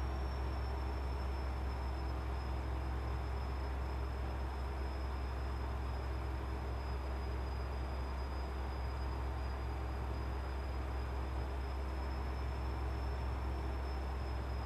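Tyres roll on a motorway with a steady rumble.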